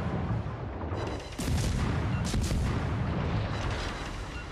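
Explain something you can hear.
Heavy naval guns boom and rumble.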